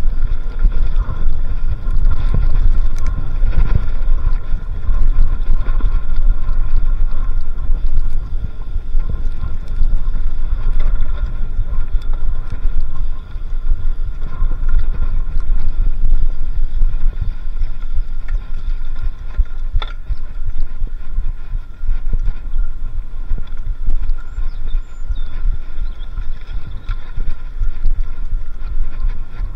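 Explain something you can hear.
Wind rumbles loudly against the microphone.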